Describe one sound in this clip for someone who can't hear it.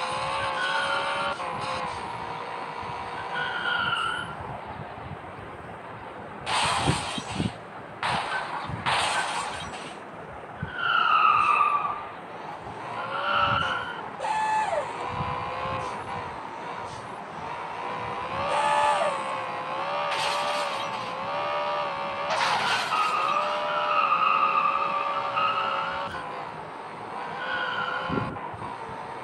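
A car engine revs up and down throughout.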